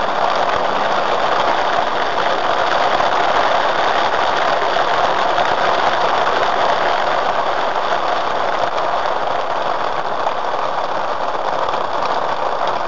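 Rain patters on a car's windscreen.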